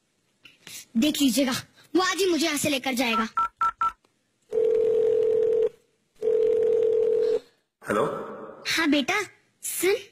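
An elderly woman speaks animatedly.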